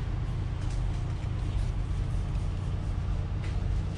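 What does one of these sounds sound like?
Packaged work gloves rustle softly as a hand handles them.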